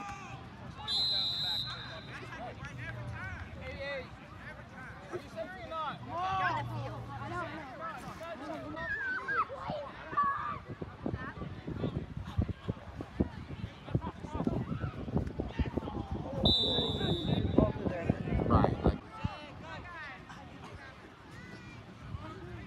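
A crowd of young people shouts and cheers outdoors.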